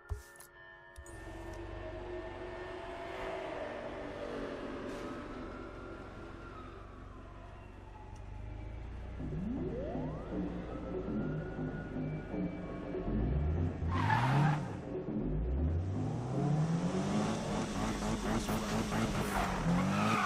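A car engine revs loudly and roars.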